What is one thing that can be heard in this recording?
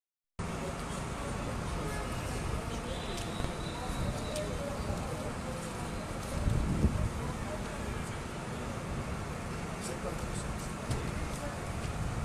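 A fire engine's motor idles in the street.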